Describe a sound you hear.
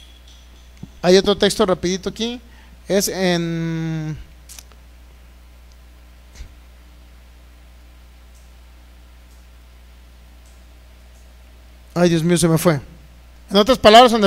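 A man speaks with feeling into a microphone, with long pauses between phrases.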